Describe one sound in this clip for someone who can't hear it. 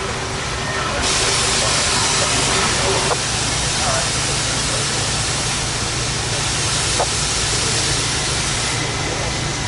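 A steam locomotive idles, hissing loudly and steadily.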